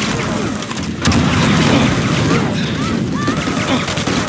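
Explosions boom in a game battle.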